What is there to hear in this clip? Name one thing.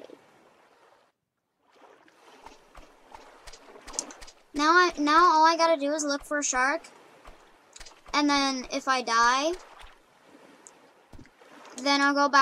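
Small waves lap gently against a shore.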